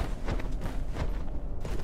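A sword swishes and slashes through the air.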